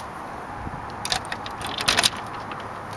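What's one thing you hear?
A key scrapes and clicks in a small metal lock.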